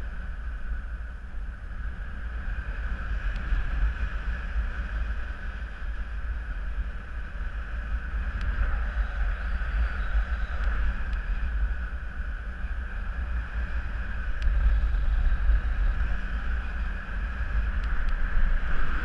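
Wind rushes steadily past the microphone, loud and rumbling.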